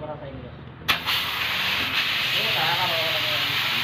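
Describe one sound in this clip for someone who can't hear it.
Compressed air hisses from a hose into an inner tube.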